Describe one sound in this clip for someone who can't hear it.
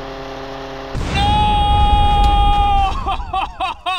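A plane crashes and explodes with a loud boom.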